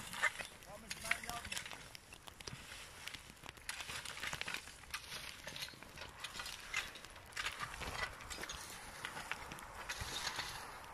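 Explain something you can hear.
A rake scrapes and rustles through dry grass and soil.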